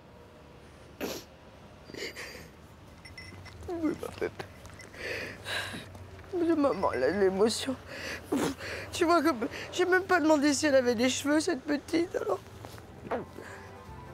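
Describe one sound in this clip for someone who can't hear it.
A woman sobs and cries with a trembling voice.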